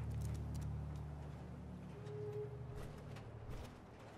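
Heavy metal footsteps thud and clank.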